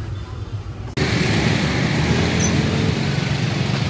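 Street noise hums outdoors.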